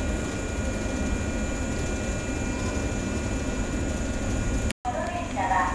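A train rolls past close by with a low, steady rumble.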